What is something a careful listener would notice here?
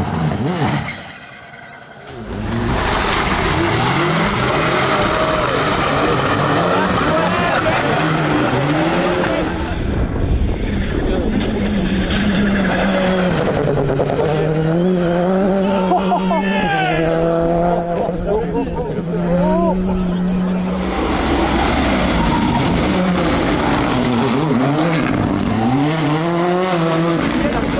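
Tyres crunch and spray over loose gravel.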